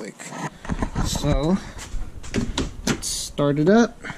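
A car door opens with a click.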